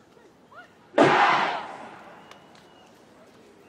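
A marching band blasts a single loud chord outdoors that rings and fades.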